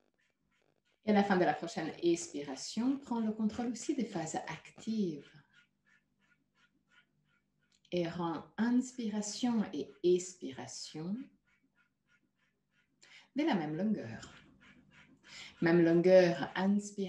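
A woman speaks calmly over an online call, in bursts with pauses.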